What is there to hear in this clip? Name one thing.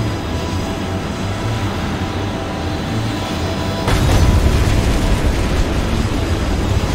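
A jet plane's engine roars steadily.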